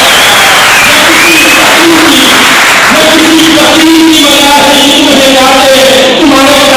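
A man speaks loudly and passionately into a microphone, heard through loudspeakers in an echoing hall.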